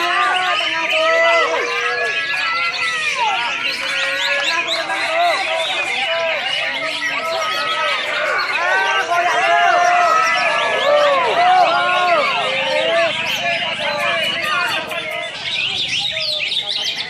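Many songbirds chirp and whistle busily all around.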